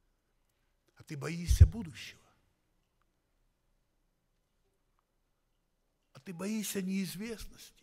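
An older man speaks calmly into a microphone, with pauses between phrases.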